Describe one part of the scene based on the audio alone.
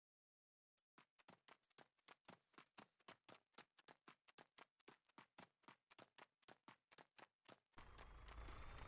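Footsteps crunch steadily on dry ground.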